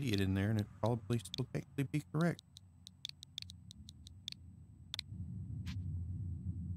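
Short electronic beeps sound as letters are picked one by one.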